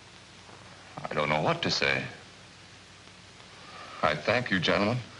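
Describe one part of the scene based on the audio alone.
A young man speaks quietly and seriously, close by.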